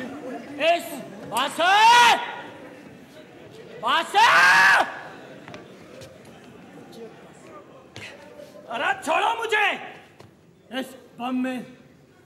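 A man shouts loudly in short, strained bursts.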